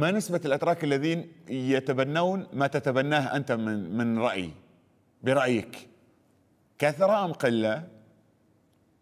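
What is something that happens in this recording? A man speaks with animation into a studio microphone.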